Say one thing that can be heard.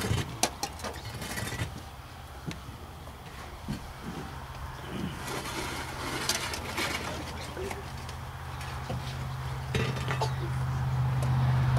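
Shovels scrape and thud into loose dirt.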